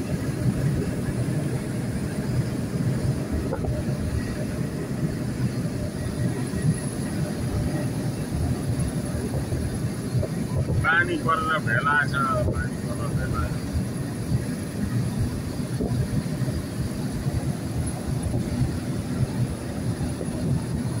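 Tyres rumble and hiss on a wet road.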